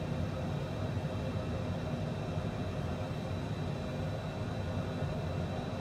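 Jet engines hum steadily with a constant rushing drone.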